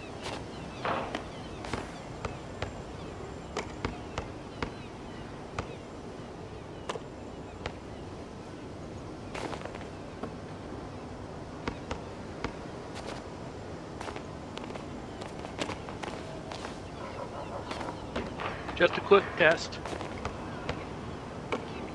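A basketball bounces sharply on an outdoor court.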